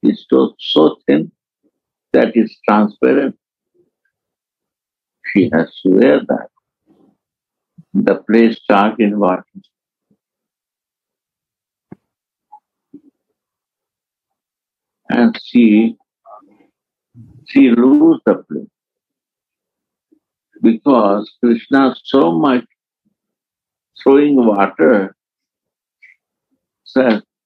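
An elderly man speaks calmly in short phrases with pauses, heard over an online call.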